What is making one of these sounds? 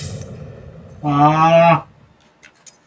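A game menu gives off a short tonal chime.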